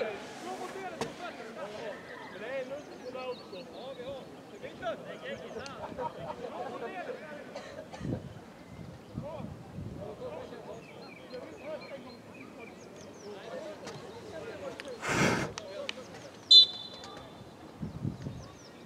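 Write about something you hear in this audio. Football players shout and call out in the distance, outdoors.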